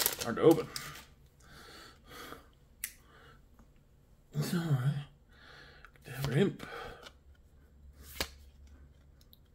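Trading cards slide softly against each other.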